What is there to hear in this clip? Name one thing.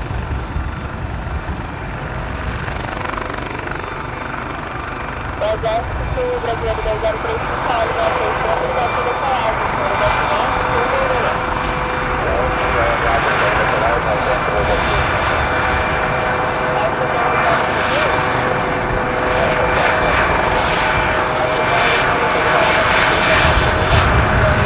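A helicopter's engine whines and its rotor thumps steadily close by, growing louder.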